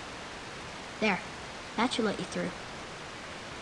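A young boy speaks briefly.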